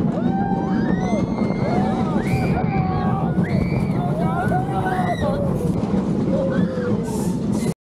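A fairground ride rumbles and rattles along its track.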